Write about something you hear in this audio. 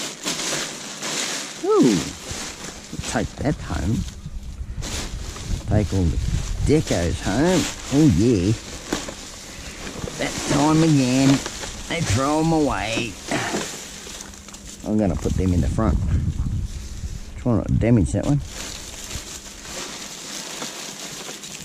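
A plastic bag rustles and crinkles as it is handled.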